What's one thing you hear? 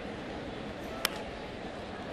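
A baseball smacks into a catcher's mitt.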